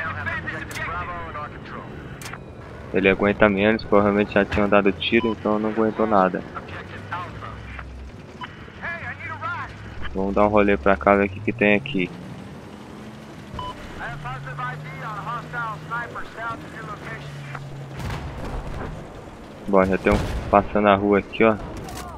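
A tank engine rumbles and whines as it drives.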